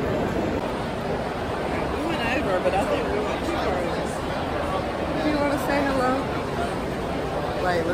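A young woman talks close to the microphone.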